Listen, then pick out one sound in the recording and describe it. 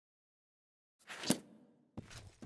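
A book closes with a soft thump.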